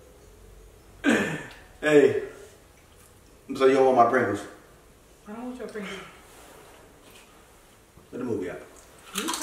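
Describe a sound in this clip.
A young man talks casually and laughs nearby.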